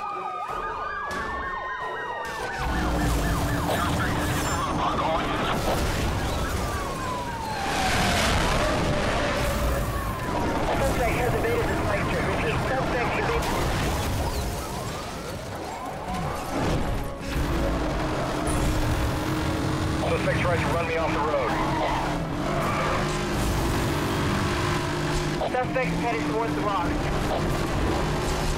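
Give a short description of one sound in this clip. Police sirens wail nearby.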